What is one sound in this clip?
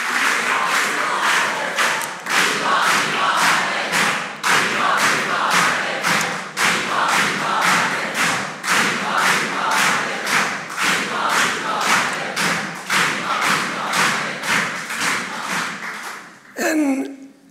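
A crowd claps together in a steady rhythm.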